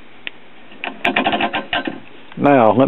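A rotary switch clicks as it is turned.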